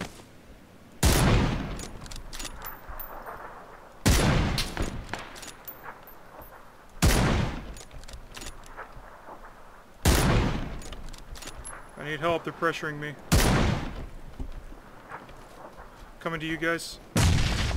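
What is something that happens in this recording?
A rifle fires loud shots, each one echoing away across open ground.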